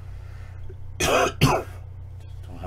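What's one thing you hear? A man coughs into his hand close to a microphone.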